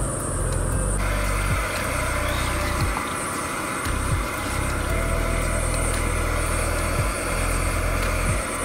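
Water boils and bubbles rapidly in a pot.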